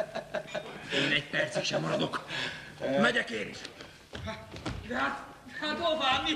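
A man laughs loudly and speaks with emotion.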